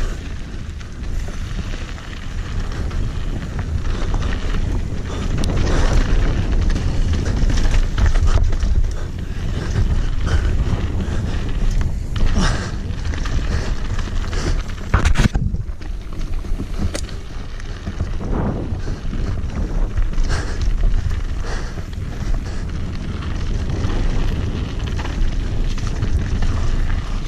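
Bicycle tyres crunch and rattle over dirt and loose rocks.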